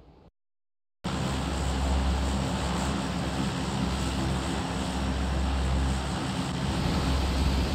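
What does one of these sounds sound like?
A large propeller aircraft drones steadily.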